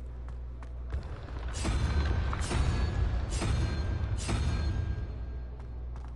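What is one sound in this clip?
A stone dial grinds as it turns, with a magical shimmer.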